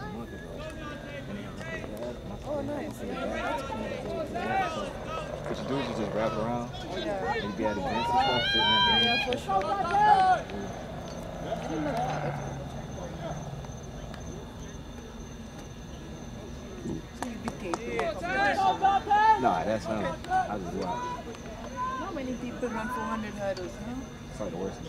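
Several men talk casually close by, outdoors.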